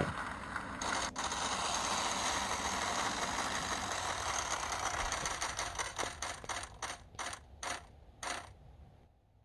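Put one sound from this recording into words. A game wheel ticks through a small speaker as it spins, the clicks slowing down until it stops.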